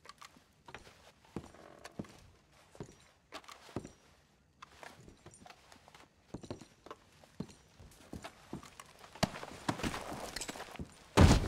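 Footsteps thud on a creaky wooden floor indoors.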